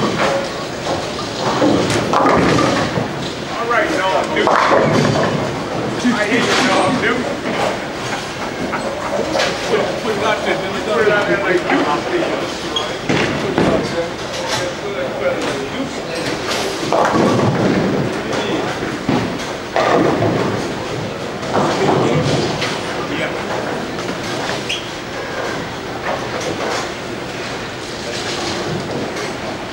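People chatter nearby in an echoing hall.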